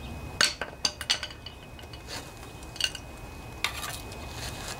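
A wrench clicks and clinks against metal engine parts.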